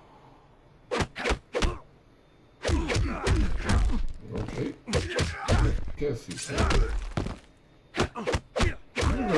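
Punches and kicks land with sharp thuds in a fighting game.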